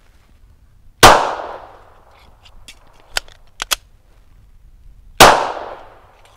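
A pistol fires a loud shot that echoes through the woods.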